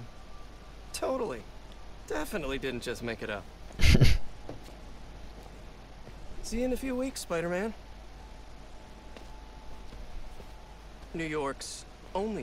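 A second young man answers warmly, close by.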